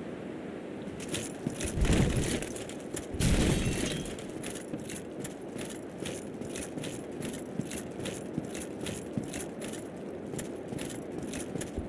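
Armored footsteps clank steadily on stone.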